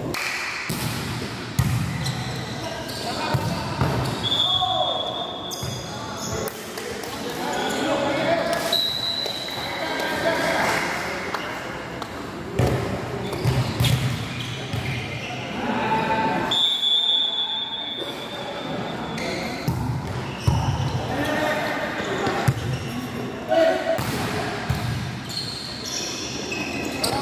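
A volleyball is struck hard again and again in an echoing hall.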